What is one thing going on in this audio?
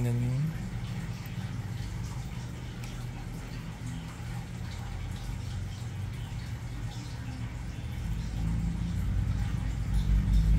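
Nail clippers snip at a toenail with small clicks.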